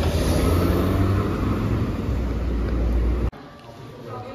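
A car rolls along a street nearby.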